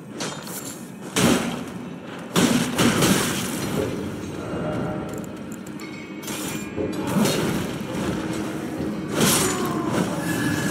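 Weapons strike a creature with heavy, ringing hits.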